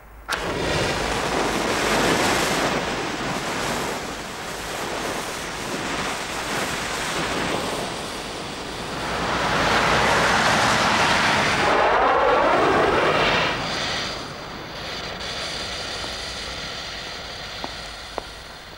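A burning flare hisses and sputters loudly.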